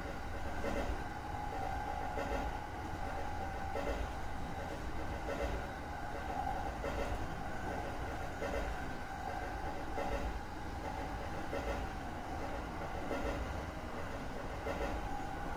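Train wheels clatter over rail joints in a steady, regular rhythm.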